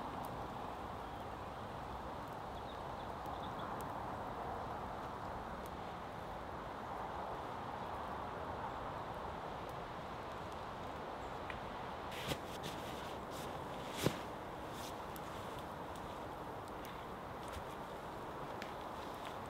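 A wood fire crackles and roars.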